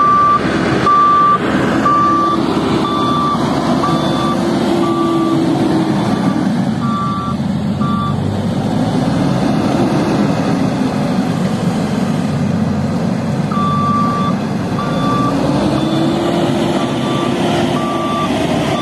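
A wheel loader's reversing alarm beeps in a steady rhythm.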